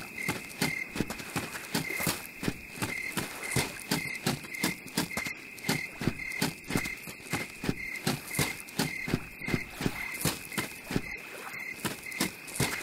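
Footsteps crunch steadily on leaves and dry ground.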